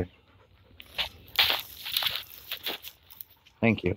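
Dry leaves rustle and crunch under a dog's paws.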